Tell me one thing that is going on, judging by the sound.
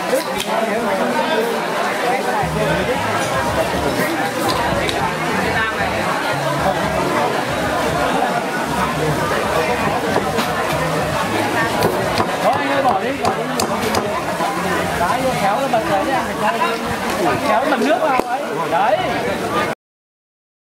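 Dishes and chopsticks clink on tables.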